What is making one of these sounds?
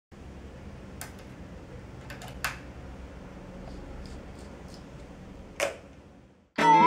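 Fingers tap and scrape against electric guitar strings.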